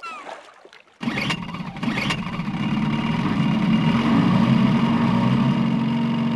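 A jet ski engine roars as it speeds off.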